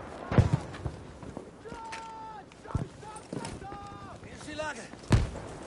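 Gunshots crack loudly, several times with pauses between them.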